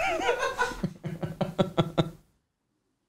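A man laughs in short bursts.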